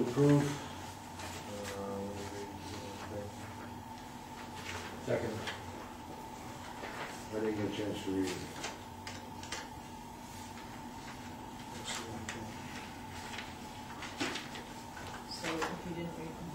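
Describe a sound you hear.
A man speaks calmly at a distance in a room.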